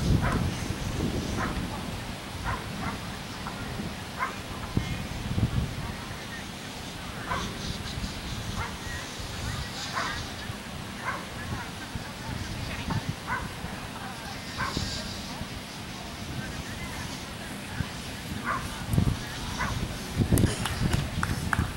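People chatter faintly in the background.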